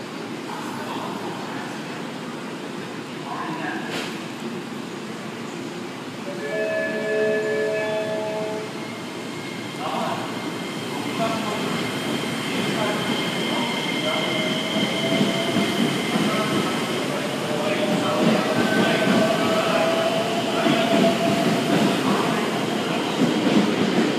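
A train rolls into the station and slows with a rumble.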